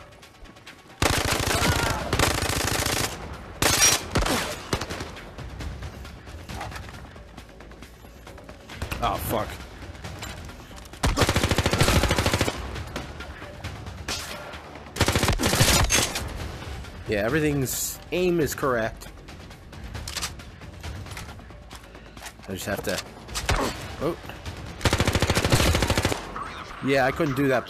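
An assault rifle fires.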